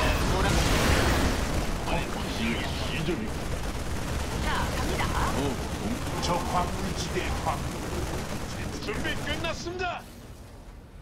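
Gunfire and explosions rattle in a busy battle.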